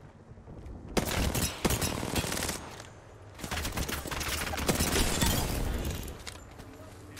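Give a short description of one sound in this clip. Gunfire bursts out loudly in rapid bursts.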